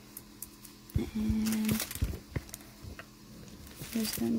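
A sheet of paper rustles as it is peeled away.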